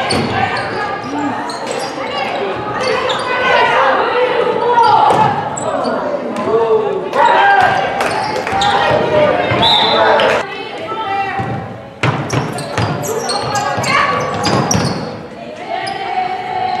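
Young women players shout to each other across the court.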